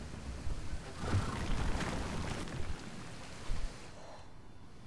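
Water rushes and splashes.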